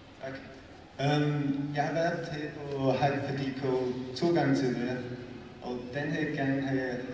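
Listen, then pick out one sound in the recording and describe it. A man speaks calmly to an audience in a large echoing hall.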